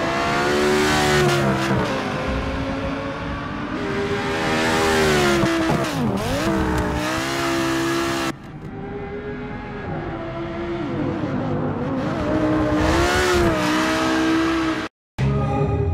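A race car engine roars and changes pitch as it shifts gears.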